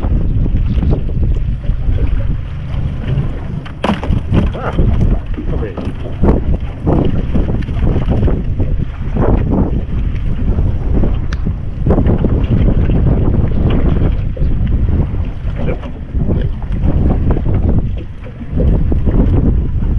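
Wind buffets outdoors on open water.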